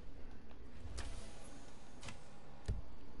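A sliding door opens with a soft whoosh.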